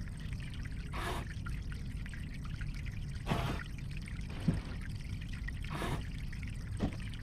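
A wooden drawer slides open and shut with a scraping rush.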